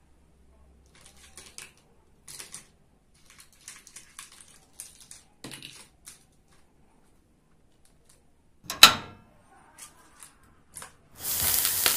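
Toy plastic pieces clatter and tap.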